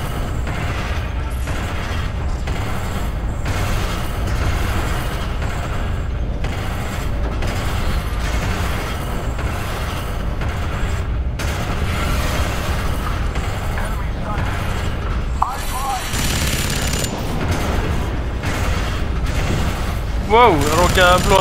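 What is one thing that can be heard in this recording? Heavy mechanical footsteps thud steadily.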